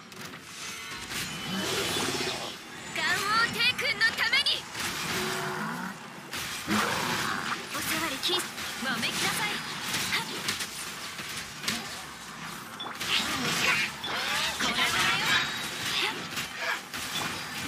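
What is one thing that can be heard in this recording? Magic blasts and sword strikes crash in rapid bursts.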